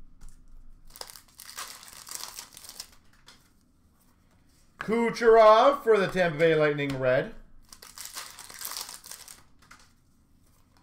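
Cards rustle and slide as they are handled.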